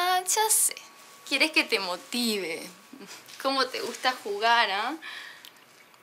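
A young woman speaks playfully and close by.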